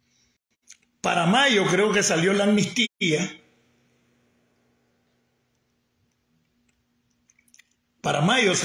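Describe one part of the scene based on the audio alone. An older man speaks close to a phone microphone, with animation and pauses.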